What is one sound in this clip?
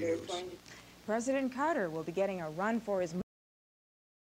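A young woman reads out calmly, as a news presenter.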